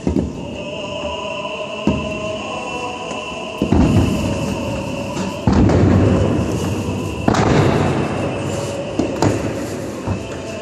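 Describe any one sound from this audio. Ceremonial staffs thump on a stone floor at a slow, steady pace in a large echoing hall.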